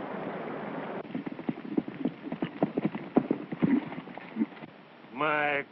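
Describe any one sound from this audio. Horses' hooves thud and clatter on the ground.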